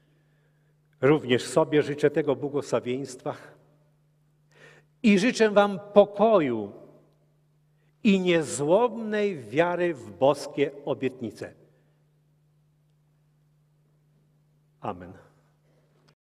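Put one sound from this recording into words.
An elderly man speaks calmly into a microphone, heard through a loudspeaker in an echoing hall.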